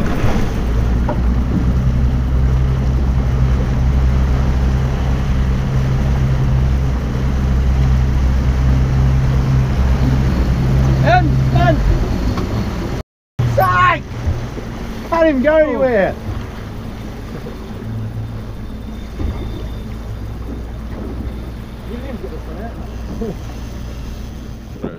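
A boat engine rumbles steadily and then drops to idle.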